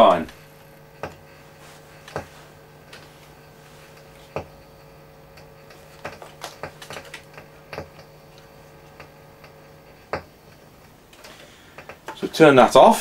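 Small objects click and knock close by.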